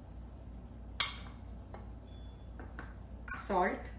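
A small bowl clinks against a metal mixing bowl.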